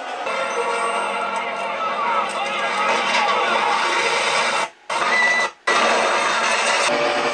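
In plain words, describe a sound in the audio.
A film soundtrack plays through small laptop speakers.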